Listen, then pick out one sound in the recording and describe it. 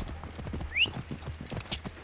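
A horse's hooves thud on the ground nearby.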